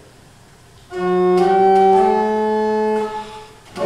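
A man sings a few long, steady notes.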